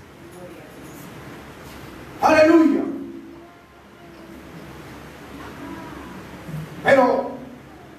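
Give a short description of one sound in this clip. An elderly man preaches into a microphone in a hall with some echo, speaking with loud emphatic bursts.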